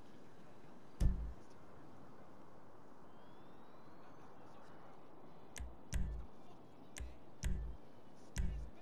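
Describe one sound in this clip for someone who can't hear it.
Menu selection blips click several times.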